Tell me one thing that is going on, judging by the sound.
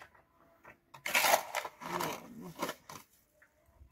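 A shovel scrapes and scoops wet cement.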